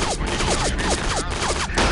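Gunshots fire in quick bursts in an echoing hall.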